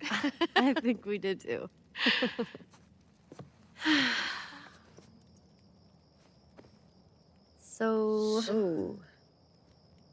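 A teenage girl speaks playfully, close by.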